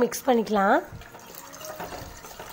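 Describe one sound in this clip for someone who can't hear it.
Water pours into a steel bowl.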